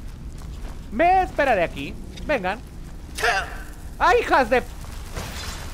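A man exclaims loudly into a nearby microphone.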